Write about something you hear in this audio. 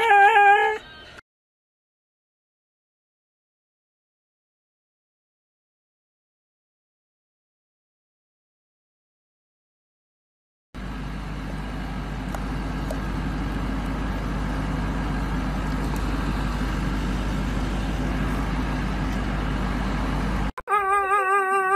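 A dog howls with a wavering, singing pitch.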